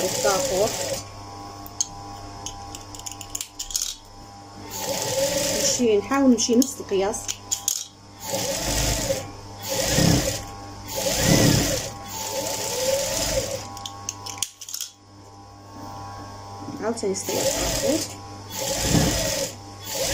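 A sewing machine runs in quick bursts, stitching fabric.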